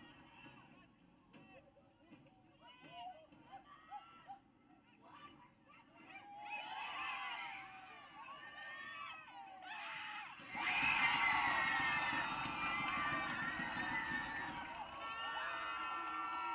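Players shout to each other across a field outdoors.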